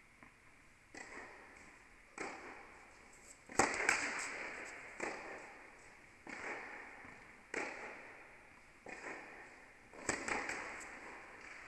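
Tennis rackets strike a ball with sharp pops that echo through a large hall.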